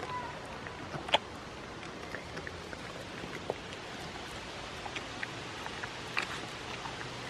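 A goat crunches on an apple up close.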